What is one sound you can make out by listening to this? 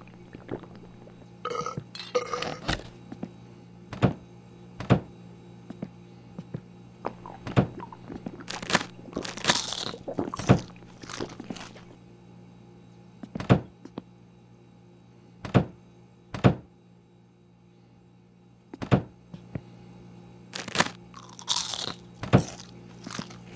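Cupboard doors and drawers open and shut with wooden knocks.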